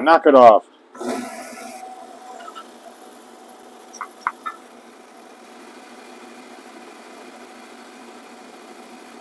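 A metal lathe spins with a steady whirring hum.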